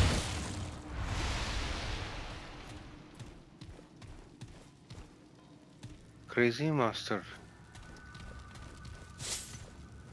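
Heavy footsteps clank on stone.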